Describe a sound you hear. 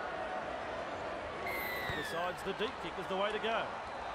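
A rugby ball is kicked with a thud.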